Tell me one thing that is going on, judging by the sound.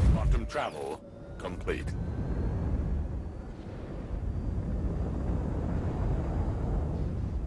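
A spaceship engine hums more quietly.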